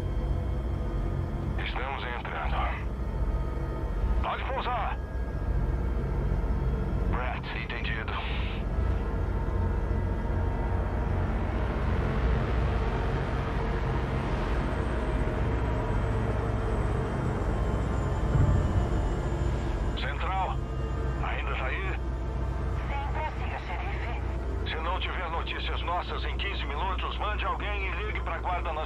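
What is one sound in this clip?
A helicopter engine drones steadily.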